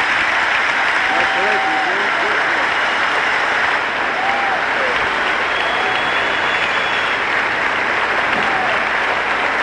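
Spectators whistle shrilly among the cheering.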